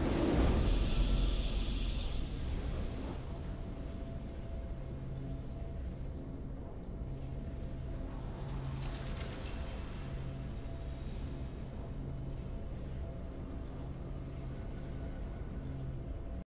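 A triumphant fanfare plays.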